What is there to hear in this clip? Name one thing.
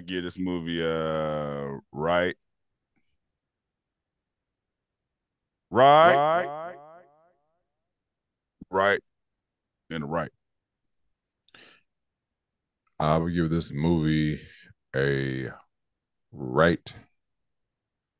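A man talks with animation into a microphone, heard over an online call.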